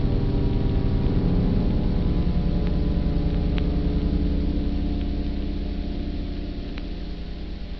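A muffled dance band plays a slow, old-fashioned tune that slowly fades.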